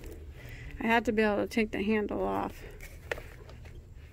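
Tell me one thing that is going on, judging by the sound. A handbag's chain strap clinks softly as it is handled.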